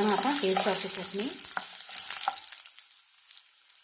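A wooden spatula scrapes and stirs in a wok.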